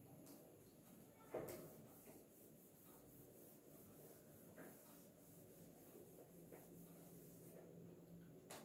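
A cloth rubs and wipes across a whiteboard.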